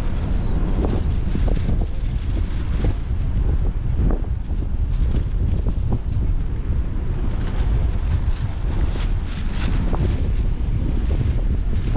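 Strong wind buffets and rumbles outdoors.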